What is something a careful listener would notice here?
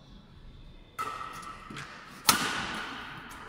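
A badminton racket strikes a shuttlecock with sharp smacks that echo through a large hall.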